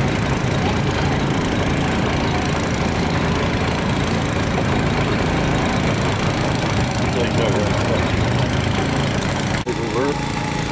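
A steam traction engine chugs and rumbles steadily nearby.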